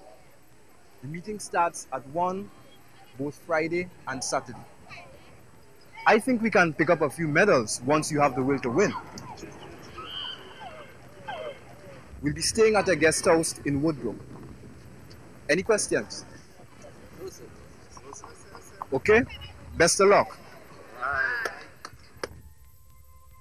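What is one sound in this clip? A man speaks calmly outdoors to a group, with pauses between phrases.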